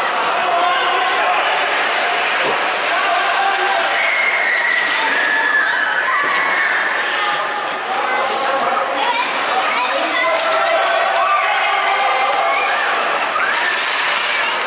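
Skate blades scrape and hiss on the ice.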